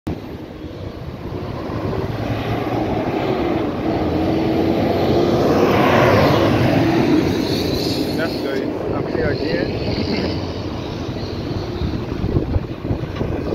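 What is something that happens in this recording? Cars drive past on an asphalt road.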